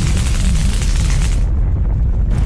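An explosion roars and crackles.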